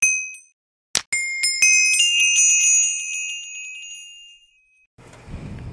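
Chiming sounds ring out as a portal lights.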